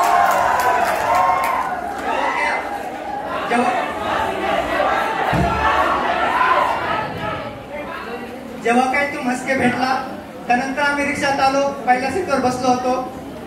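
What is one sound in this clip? A young man sings into a microphone through loudspeakers in an echoing hall.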